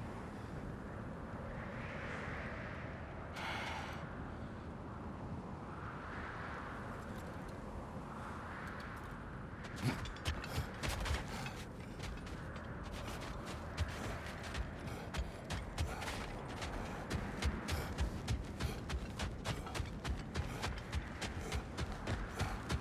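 Wind blows steadily in a snowstorm.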